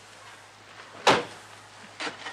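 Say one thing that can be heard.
A carriage door shuts with a sharp knock.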